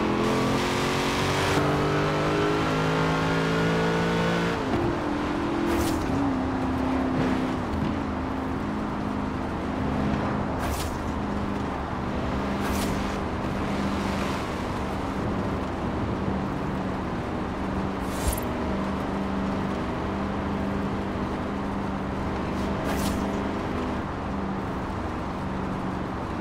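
A car engine roars at high speed, its pitch shifting with each gear change.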